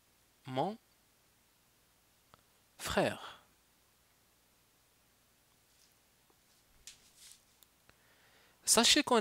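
A man speaks in short bursts through a headset microphone.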